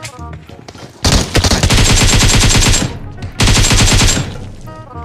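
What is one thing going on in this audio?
Rapid automatic gunfire rattles in short bursts.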